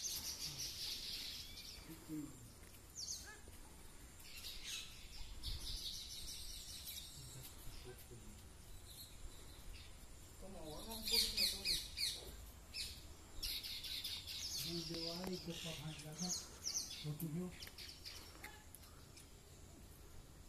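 Small birds chirp and twitter nearby.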